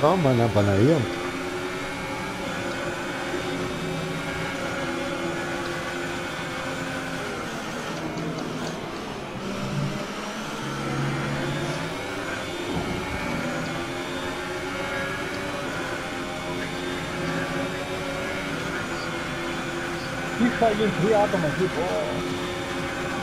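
A racing car engine screams at high revs, rising and dropping in pitch as the gears change.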